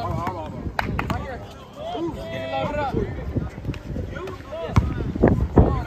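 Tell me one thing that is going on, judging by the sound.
A basketball bounces on hard pavement with dull thumps.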